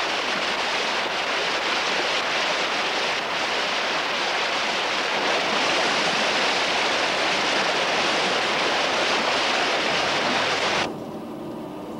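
Loose grains pour and rattle in a steady rushing stream.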